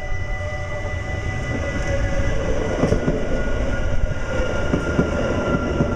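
Train wheels clatter over the rail joints.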